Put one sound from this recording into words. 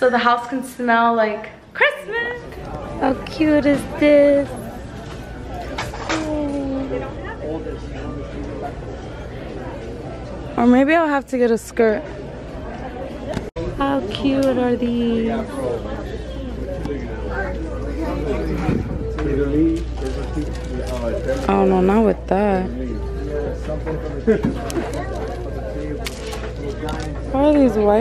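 A young woman talks cheerfully and close by.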